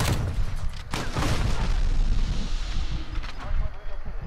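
An explosion booms and rumbles nearby.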